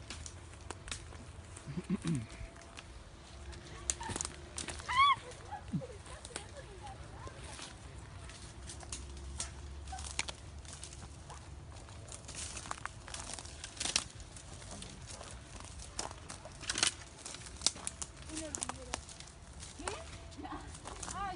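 Footsteps crunch through brush and dry leaves.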